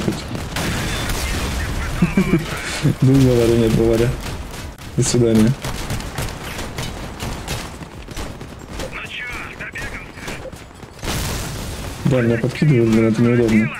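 Gunfire and explosions crackle from a game.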